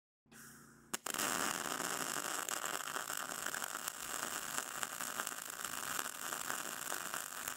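A welding arc crackles and sizzles steadily.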